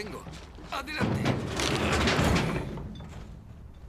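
Junk clatters and crashes into a metal bin.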